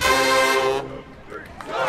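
A marching band blasts a loud brass chord, then stops.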